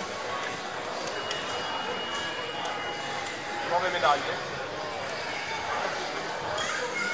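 Fighting game hits and effects play through a loudspeaker.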